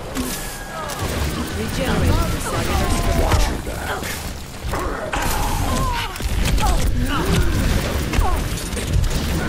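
Game explosions and impacts thud loudly.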